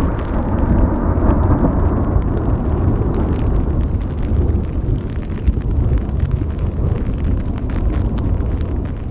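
Raindrops patter on a nylon tent.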